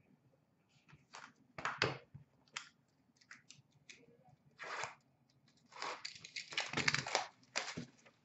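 Card packs and boxes rustle and tap as they are handled.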